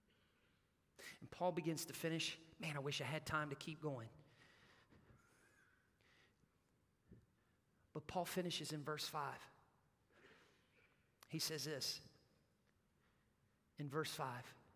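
A man speaks with animation through a microphone in a large hall, pausing between phrases.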